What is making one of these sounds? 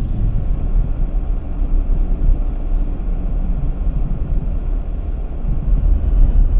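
Tyres roll over a snowy road with a muffled rumble.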